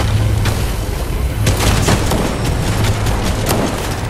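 A treasure chest creaks open with a bright chime.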